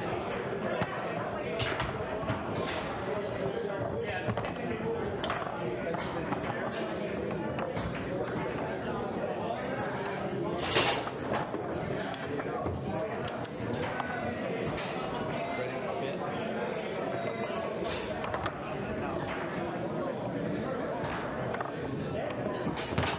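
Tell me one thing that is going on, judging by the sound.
Foosball rods clatter and slide in their bearings.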